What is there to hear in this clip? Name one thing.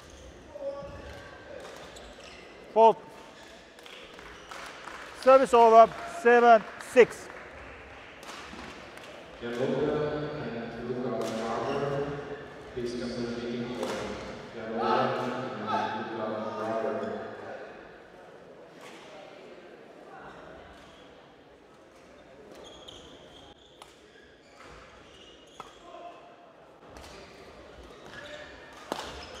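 A racket strikes a shuttlecock with light, sharp pops.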